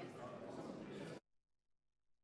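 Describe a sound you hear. Many people murmur quietly in a large echoing hall.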